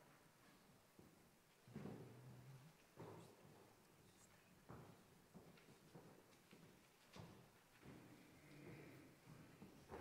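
Footsteps thud on a wooden floor in a large echoing room.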